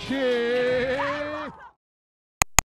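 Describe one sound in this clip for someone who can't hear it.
A man laughs loudly and heartily close by.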